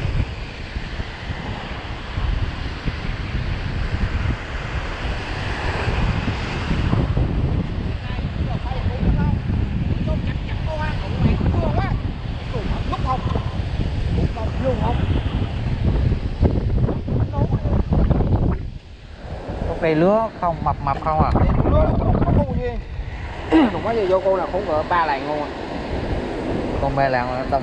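Waves wash onto a shore.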